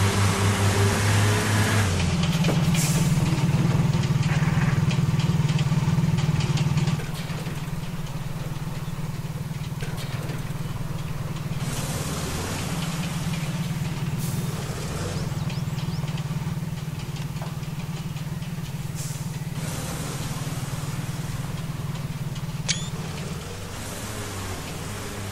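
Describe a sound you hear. A heavy truck's diesel engine rumbles steadily.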